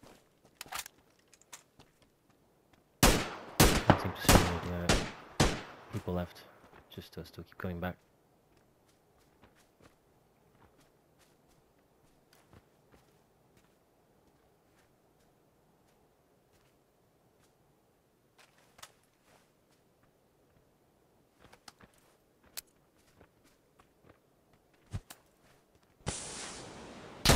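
Footsteps crunch over grass and rock at a steady walking pace.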